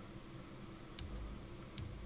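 Footsteps tap on a wooden floor.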